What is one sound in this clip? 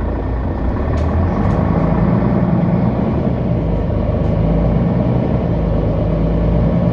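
A bus engine rumbles louder as the bus approaches.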